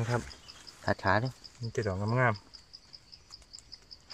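A knife snaps through a mushroom stem.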